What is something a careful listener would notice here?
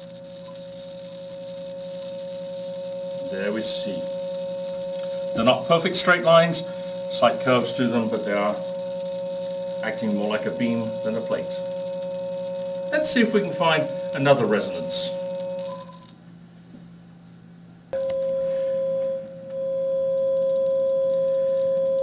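A vibrating metal plate hums with a steady, high tone.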